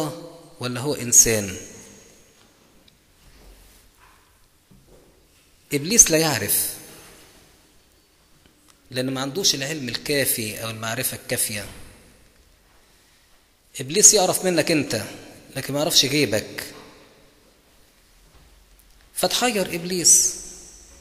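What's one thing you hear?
A middle-aged man speaks through a microphone in short bursts with pauses, in a room that echoes.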